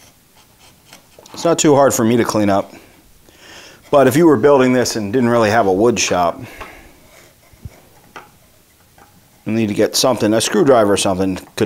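A chisel scrapes along a groove in wood.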